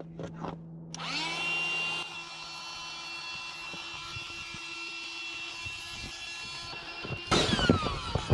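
An electric pump hums steadily, then stops.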